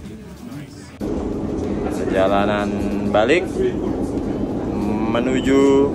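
A train hums and rumbles steadily as it rides.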